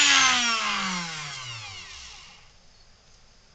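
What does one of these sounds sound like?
A small rotary tool whines as it spins down and fades.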